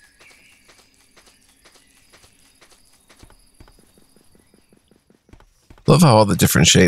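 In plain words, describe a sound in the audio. Footsteps patter steadily on the ground.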